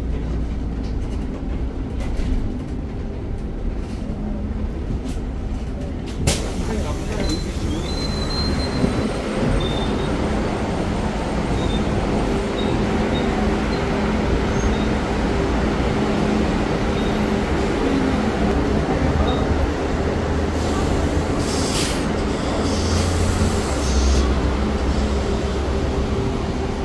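A bus engine hums steadily nearby.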